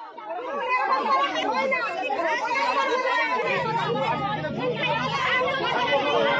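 A man speaks firmly to the crowd.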